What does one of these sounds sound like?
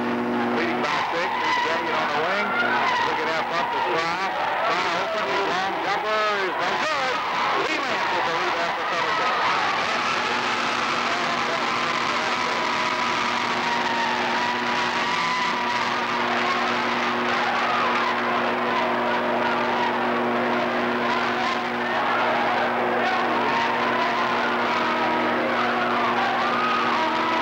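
A large crowd cheers and shouts loudly in an echoing gym.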